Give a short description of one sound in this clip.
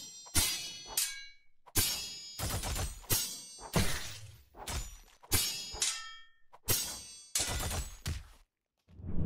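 Sword blades clash and ring out with sharp metallic hits.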